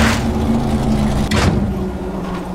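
A vehicle engine rumbles and then cuts out.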